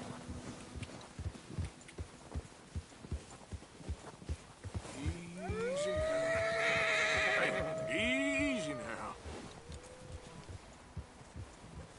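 Horse hooves thud steadily on snow.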